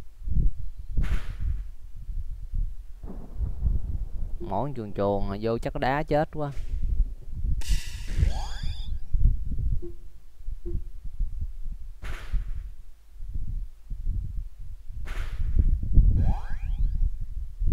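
Short electronic game sound effects chime and whoosh.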